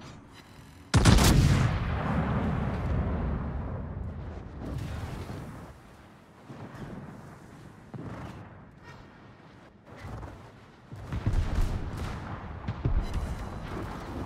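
Heavy naval guns fire a thunderous salvo that rumbles away.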